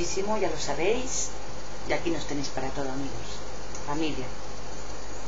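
A middle-aged woman speaks softly, close to a microphone.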